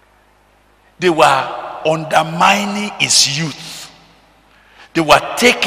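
An elderly man preaches with animation into a microphone, in a reverberant hall.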